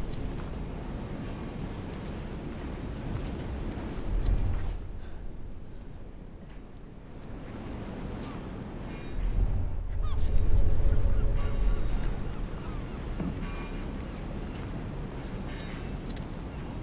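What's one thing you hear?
Footsteps shuffle softly on a hard floor.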